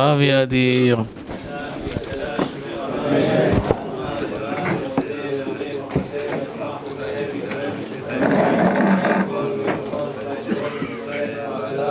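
A man talks quietly at close range.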